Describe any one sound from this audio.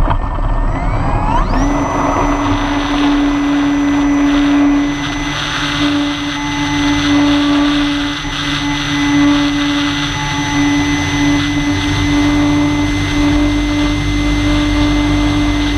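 Small drone motors whine at a high, steady pitch after a quick rise.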